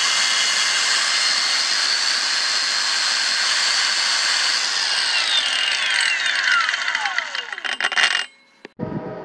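A small circular saw whirs at high speed, then winds down with a falling whine.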